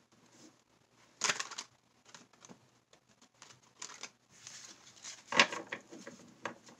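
Playing cards riffle together with a quick fluttering patter.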